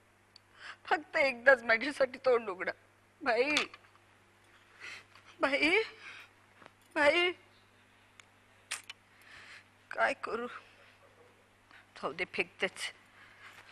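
An elderly woman speaks nearby with emotion.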